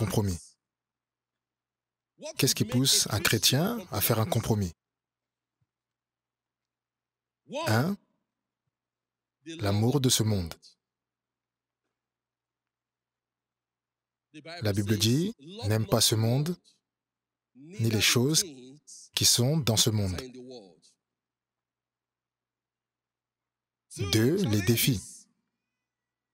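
A man preaches with animation into a microphone, in short bursts with pauses.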